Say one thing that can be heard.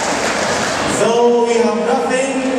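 Men sing together in harmony through loudspeakers.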